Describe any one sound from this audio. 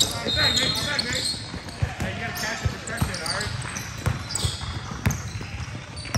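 A basketball bounces on a hard indoor court.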